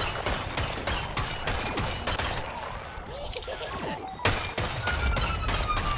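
A launcher fires rapid shots with sharp blasts.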